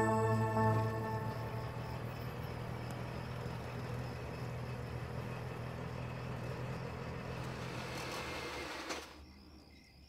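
An auto-rickshaw engine putters steadily as the vehicle approaches.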